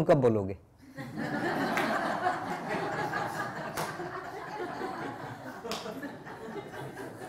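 An elderly man chuckles softly.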